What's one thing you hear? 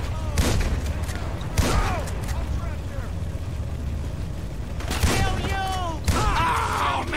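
A shotgun fires loud, echoing blasts.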